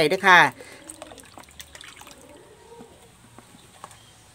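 Liquid trickles softly from a packet into a metal bowl.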